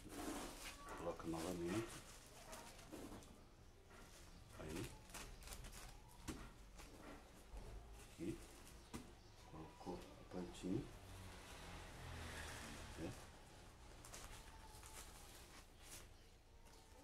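Hands rustle leaves and press crumbly soil.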